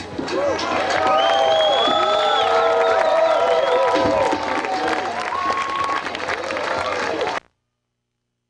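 An electric guitar plays loudly with a band in a live hall.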